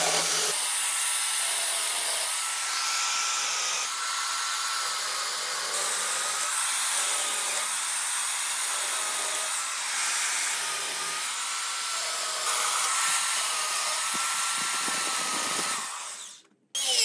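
A chainsaw whines steadily as it cuts into spinning wood.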